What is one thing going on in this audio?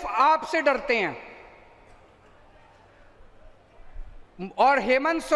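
A man speaks forcefully into a microphone, his voice echoing over loudspeakers.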